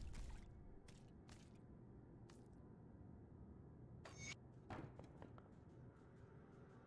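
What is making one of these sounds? Short clicks tick as menus open.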